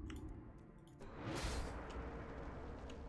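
A magic spell whooshes in a game.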